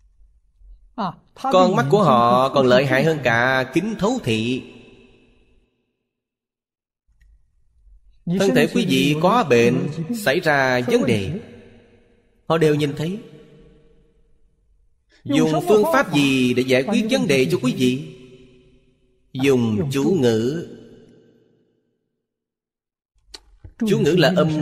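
An elderly man speaks calmly and with animation into a close microphone, in short phrases with pauses.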